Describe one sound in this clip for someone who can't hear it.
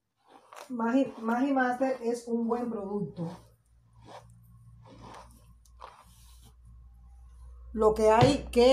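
Hands rustle softly through long hair.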